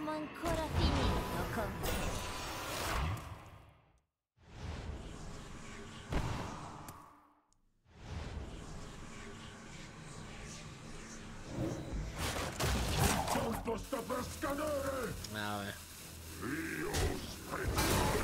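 Game creatures clash with bursts of magical effects.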